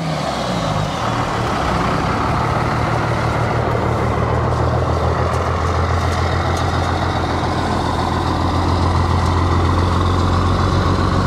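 A truck's engine rumbles loudly and steadily.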